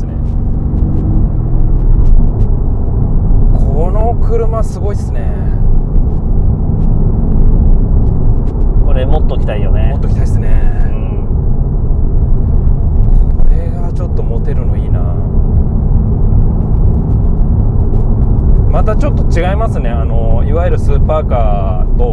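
A car engine rumbles low and steadily from inside the cabin.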